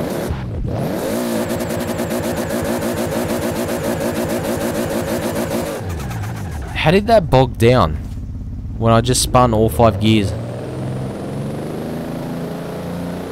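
A sports car engine roars and revs hard.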